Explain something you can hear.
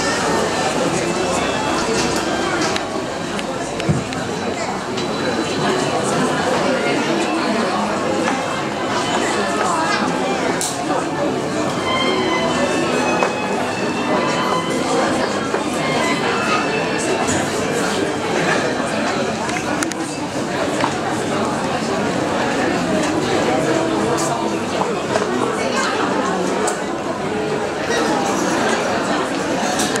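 A crowd of men and women chatters indoors.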